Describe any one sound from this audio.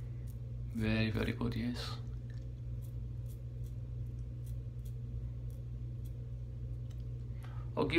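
A razor scrapes over stubble in short strokes.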